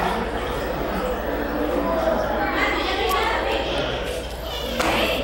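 Beluga whales chirp and whistle underwater.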